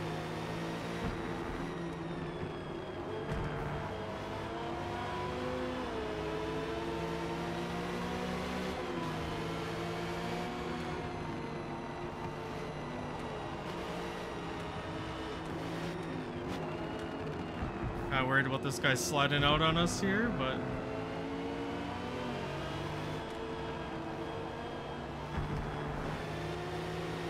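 A racing car engine roars steadily, its pitch rising and falling with gear changes.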